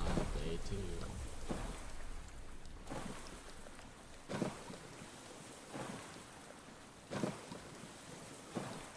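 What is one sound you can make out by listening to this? Waves slosh and splash against a small rubber raft on open water.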